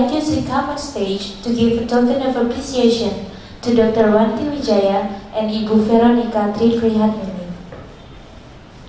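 A young woman speaks clearly into a microphone over a loudspeaker in a large room.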